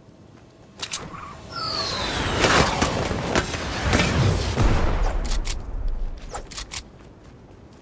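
Building pieces snap into place with sharp clacks.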